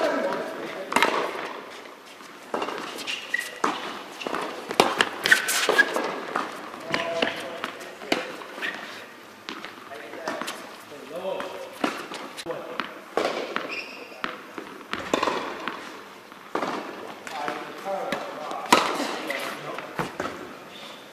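Tennis balls bounce on the court.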